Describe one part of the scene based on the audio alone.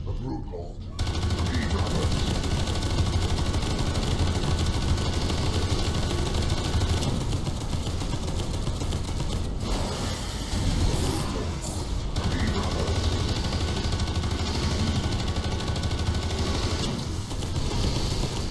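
Heavy guns fire in loud, rapid bursts.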